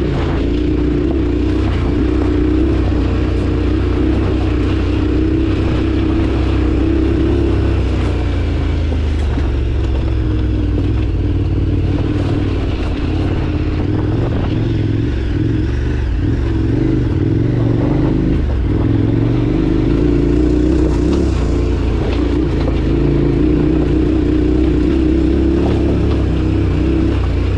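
A motorcycle engine drones steadily, rising and falling as the rider speeds up and slows down.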